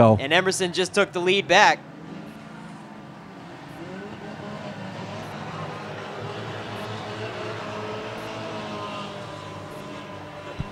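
Race car engines drone and roar around a track.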